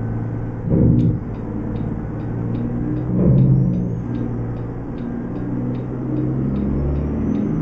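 A turn signal clicks at an even pace.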